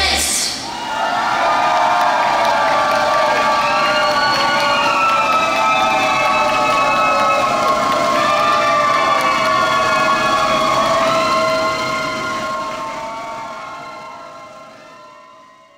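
A young woman sings through a microphone.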